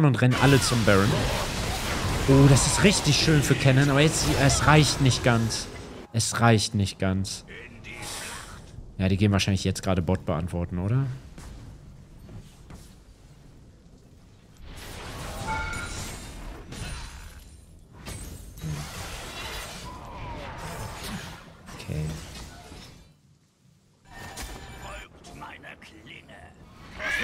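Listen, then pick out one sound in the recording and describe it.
Game spells and attacks whoosh and crackle.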